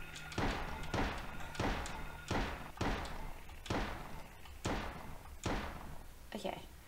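Slow, heavy footsteps thud on a wooden floor with a ringing echo.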